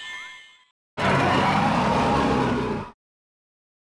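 A giant creature lets out a loud roar.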